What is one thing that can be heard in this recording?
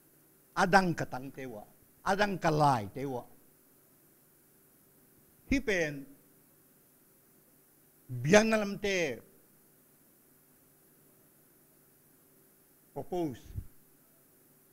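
An elderly man speaks slowly and emphatically into a microphone, heard through loudspeakers with pauses between phrases.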